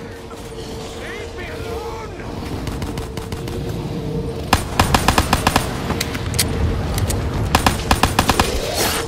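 A zombie snarls and groans nearby.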